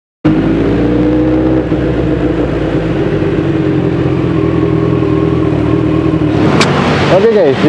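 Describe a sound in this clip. Motorcycle engines rumble steadily as they pass on a road.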